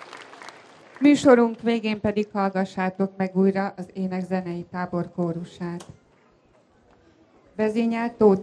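A woman speaks calmly through a loudspeaker.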